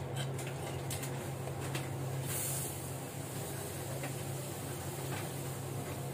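Hot oil sizzles softly in a pan.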